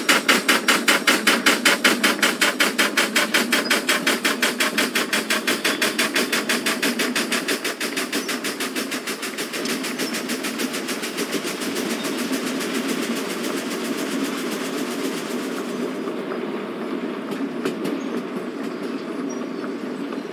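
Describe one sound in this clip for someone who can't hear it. Train wheels rumble steadily along the rails.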